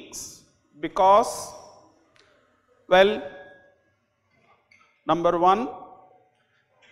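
A middle-aged man speaks slowly and deliberately through a microphone in an echoing hall.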